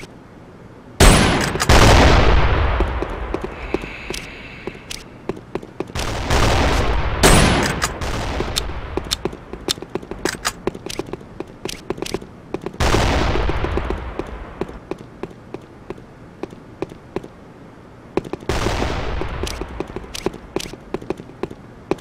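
A sniper rifle fires loud shots, each with a long echoing tail.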